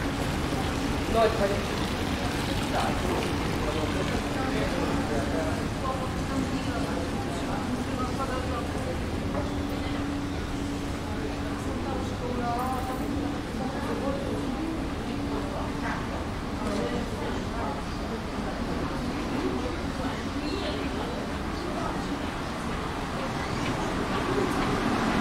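Adults murmur and talk quietly in a large echoing hall.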